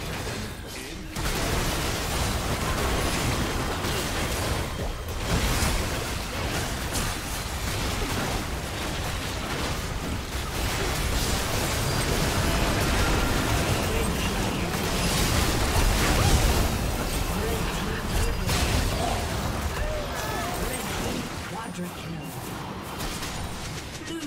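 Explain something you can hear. Magic blasts and explosions crackle and boom in a fierce battle.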